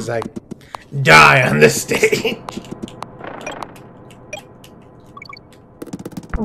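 Video game sound effects blip and chime.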